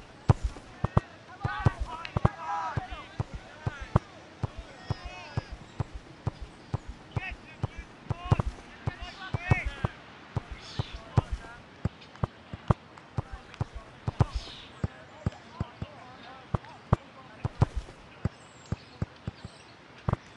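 A ball is kicked with short dull thuds, again and again.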